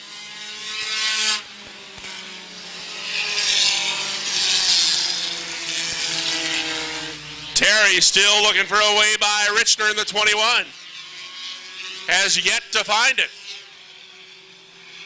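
Racing car engines roar and whine as cars speed past on a track.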